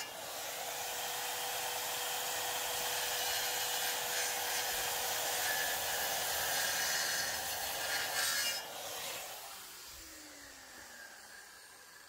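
A circular saw whines loudly as it cuts into wood, then winds down.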